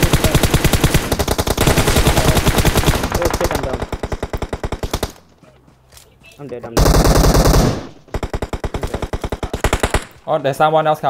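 Rapid bursts of automatic gunfire crack close by.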